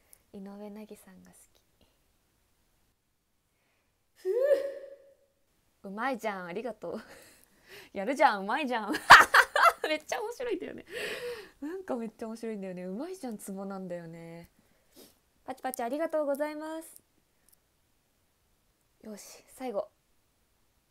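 A young woman talks cheerfully close to a microphone.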